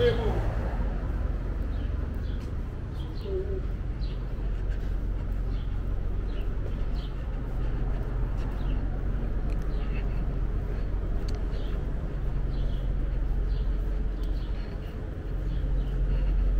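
City traffic rumbles steadily nearby outdoors.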